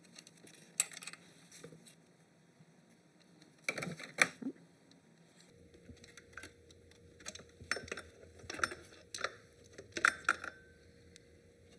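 Metal tools click and clink against engine parts.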